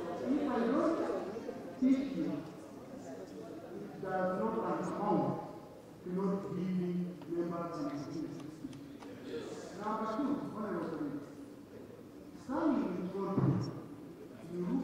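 A man speaks calmly and deliberately into a microphone.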